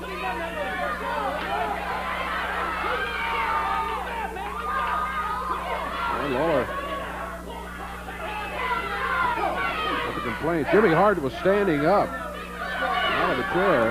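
A crowd chatters and yells loudly in a large hall.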